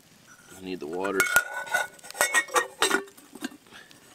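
A metal pot lid clinks and rattles.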